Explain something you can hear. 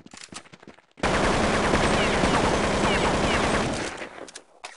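A rifle fires a loud, rapid burst of shots.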